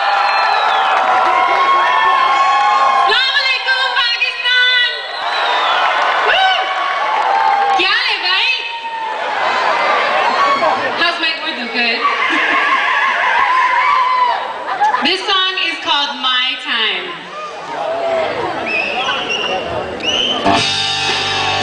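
A band plays loudly through loudspeakers.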